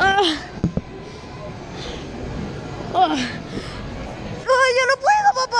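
A young child squeals and vocalizes close by, in high, sing-song bursts.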